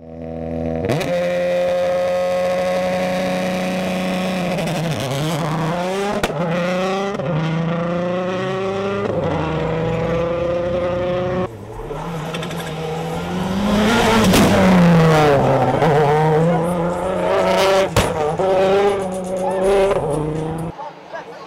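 A rally car engine roars loudly and revs up and down through the gears.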